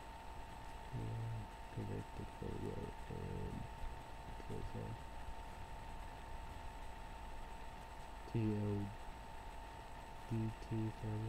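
A young man speaks quietly and close by, in short bursts.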